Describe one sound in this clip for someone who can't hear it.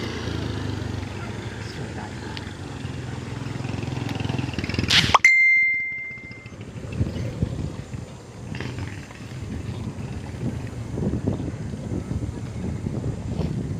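A bicycle rattles over the road.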